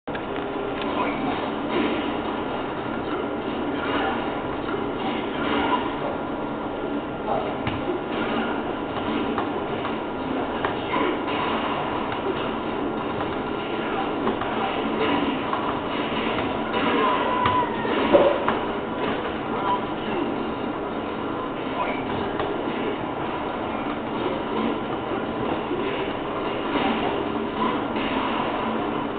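Punches and kicks thud and smack from a television speaker.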